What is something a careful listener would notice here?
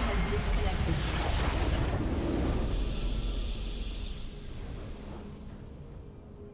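A loud magical blast bursts and crashes, then fades away.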